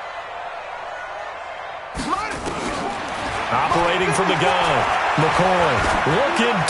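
A large stadium crowd roars and grows louder.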